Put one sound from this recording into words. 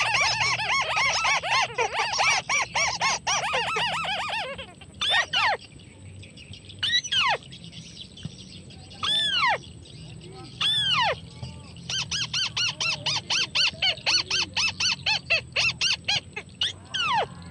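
Birds chatter rapidly in quick bursts.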